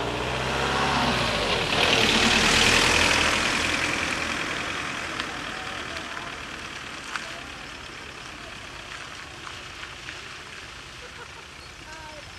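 A car passes close by on a wet road, its tyres hissing, and fades into the distance.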